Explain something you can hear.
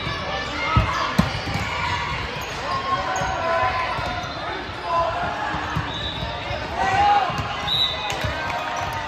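Shoes squeak on a gym floor, echoing in a large hall.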